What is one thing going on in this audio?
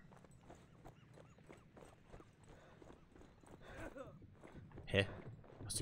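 Footsteps crunch on stone and gravel.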